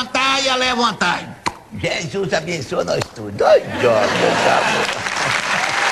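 An elderly man laughs loudly.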